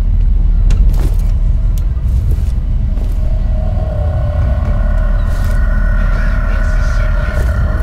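Footsteps thud on a metal grating.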